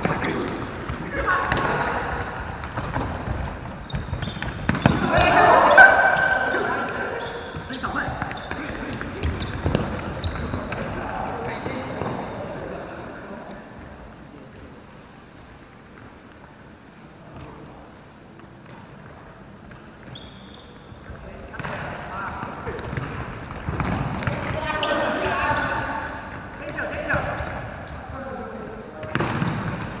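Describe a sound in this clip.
Adult players shout to each other during an indoor futsal game in a large echoing hall.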